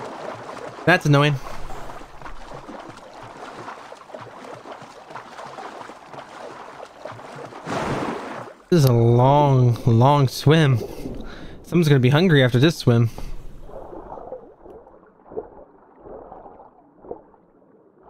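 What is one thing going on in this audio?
Water splashes and bubbles as a figure dives under the sea.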